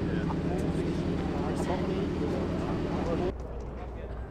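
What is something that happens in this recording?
A crowd of men and women chat nearby outdoors.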